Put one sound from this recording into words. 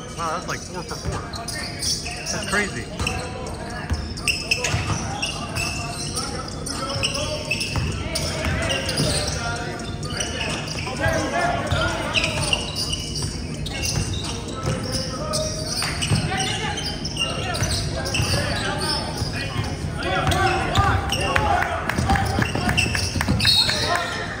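A basketball bounces on a hard wooden floor in an echoing gym.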